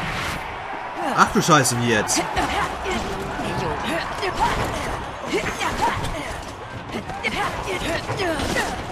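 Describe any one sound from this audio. Heavy blows and metal clashes ring out in a fight.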